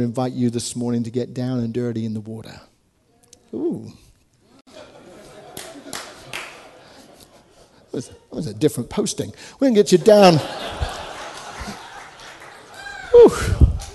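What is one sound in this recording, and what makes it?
A man speaks with animation through a microphone in an echoing hall.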